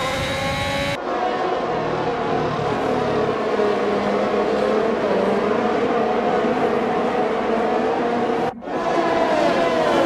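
Racing car engines drone as cars pass by.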